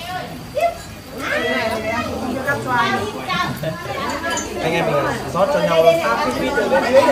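Young men talk and chat together with animation, close by.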